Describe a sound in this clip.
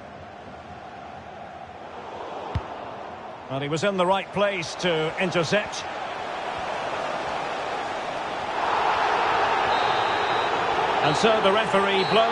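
A large crowd murmurs and cheers in a stadium, swelling louder toward the end.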